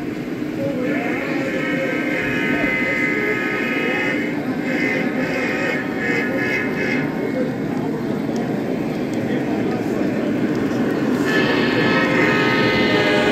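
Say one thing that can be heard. A model train rumbles along metal tracks, coming closer.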